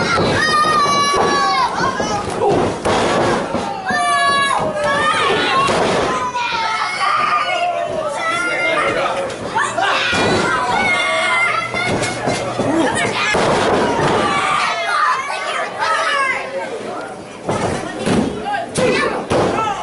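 A crowd of spectators cheers and shouts in an echoing hall.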